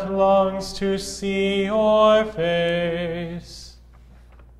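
A man sings a chant into a microphone in an echoing hall.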